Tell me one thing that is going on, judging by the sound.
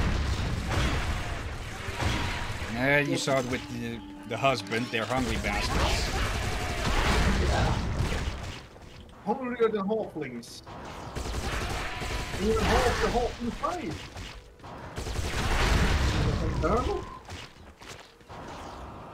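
Rapid gunfire and blasts crackle throughout.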